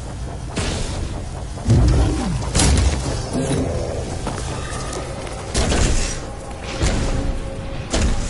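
A large mechanical walker stomps with heavy, booming thuds.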